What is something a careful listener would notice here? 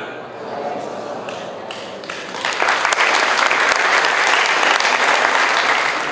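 A man reads out aloud through a microphone in a large hall.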